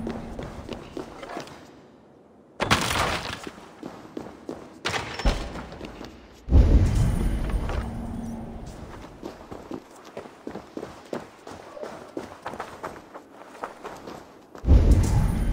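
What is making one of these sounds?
Quick footsteps patter on stone and grass.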